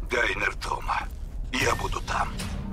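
A man speaks calmly over a phone call.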